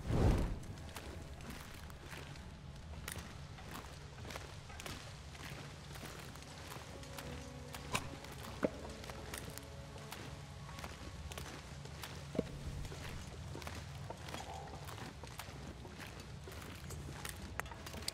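Footsteps scuff on stony ground.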